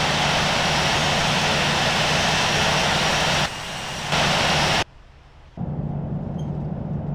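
Jet engines roar steadily, with sudden cuts in loudness.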